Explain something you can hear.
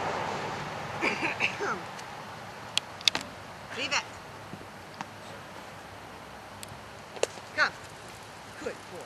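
An elderly woman calls out to a dog in an animated, coaxing voice.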